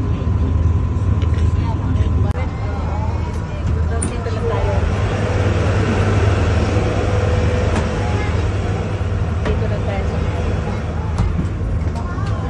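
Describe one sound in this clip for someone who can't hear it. Water rushes and splashes against a moving boat's hull.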